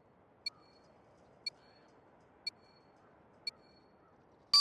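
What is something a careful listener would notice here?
A short electronic beep sounds once each second as a countdown.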